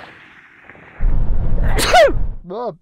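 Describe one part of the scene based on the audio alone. A man coughs close by.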